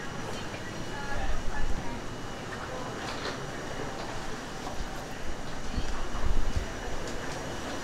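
A rolling suitcase rumbles over a hard floor.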